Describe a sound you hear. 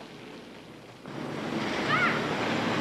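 Children shout playfully nearby.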